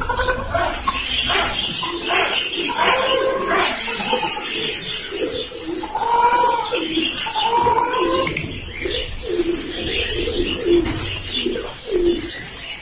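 Straw rustles as a raccoon shifts in its nest.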